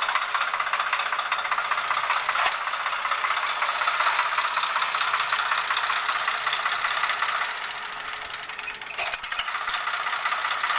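A tractor's diesel engine runs with a steady, loud clatter close by.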